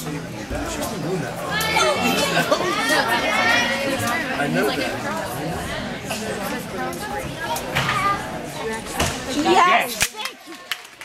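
Several people chatter nearby in a large echoing hall.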